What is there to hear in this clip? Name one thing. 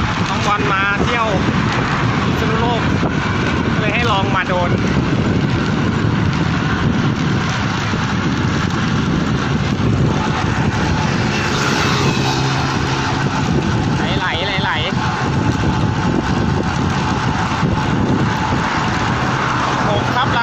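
Wind rushes loudly and steadily past while riding a bicycle.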